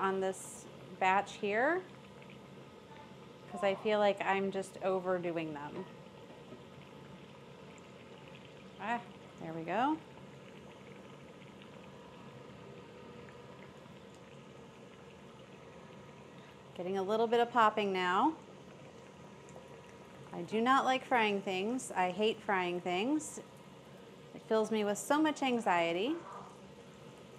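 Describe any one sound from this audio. Oil sizzles and bubbles as food fries in a pan.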